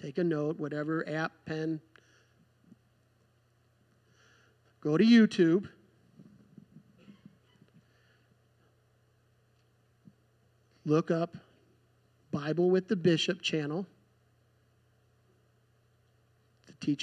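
A man speaks through a microphone and loudspeakers, in short bursts with pauses.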